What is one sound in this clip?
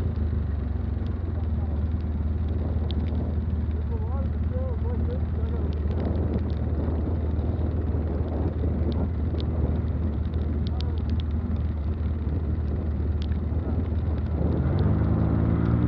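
An all-terrain vehicle engine idles with a low, steady rumble close by.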